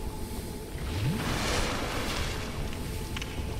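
A magical effect swells with a rising whoosh.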